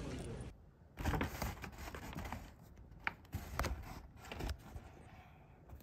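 Plastic packaging rustles and crinkles.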